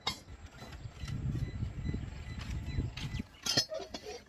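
A shovel scrapes through charcoal.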